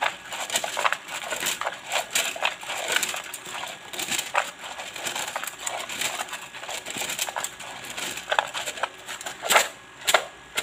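Thin sticks rustle and tap together as a hand handles them.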